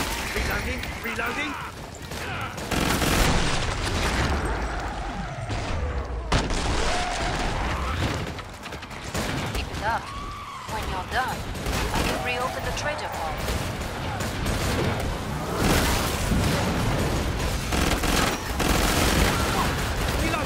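Monsters screech and growl nearby.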